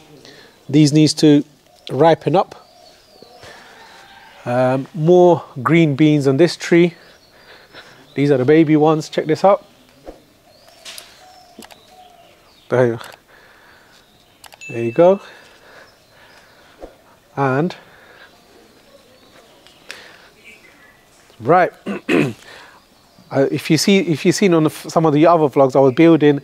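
A man speaks calmly into a clip-on microphone, close by.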